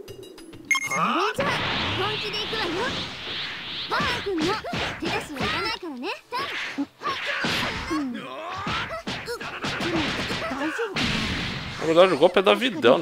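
Energy blasts whoosh and roar in bursts.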